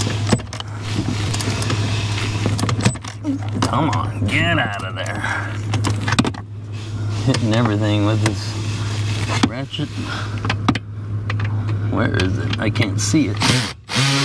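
A steering column clunks as it is tilted and locked into place.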